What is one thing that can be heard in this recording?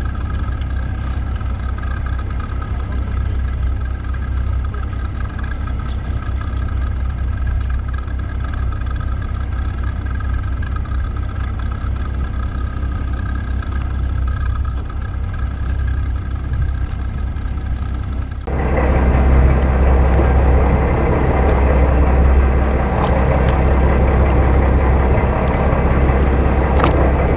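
A fishing boat's engine hums.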